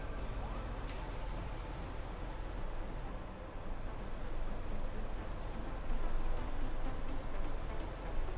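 Tyres roll and hum on the road.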